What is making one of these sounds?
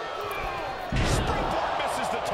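A body slams down hard onto a wrestling mat with a heavy thud.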